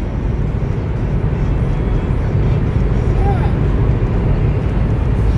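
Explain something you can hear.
A car drives steadily along a highway with a low rumble of road noise from inside.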